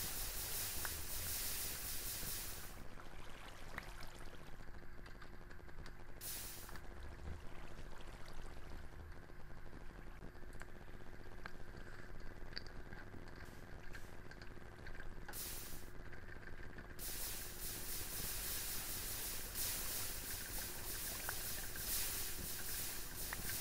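Fire crackles and hisses.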